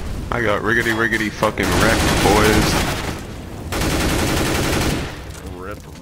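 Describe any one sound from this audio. Flames roar and crackle steadily.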